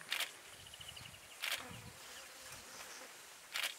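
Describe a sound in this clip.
Elephants rustle and snap branches in the bushes.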